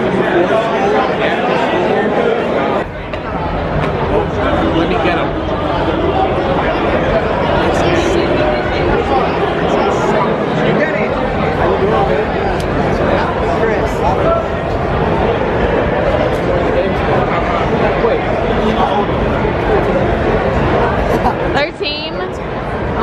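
A crowd chatters loudly all around in an echoing concourse.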